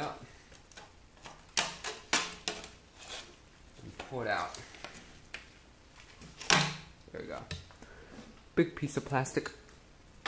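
A plastic case clatters and knocks as it is handled.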